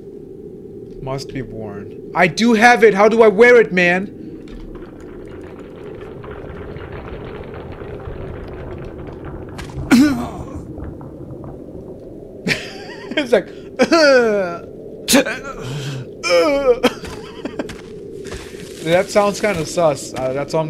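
A young man talks animatedly into a close microphone.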